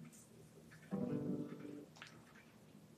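An acoustic guitar is strummed softly.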